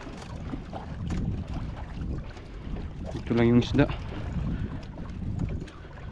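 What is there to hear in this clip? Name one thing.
Water splashes and sloshes against the side of a boat.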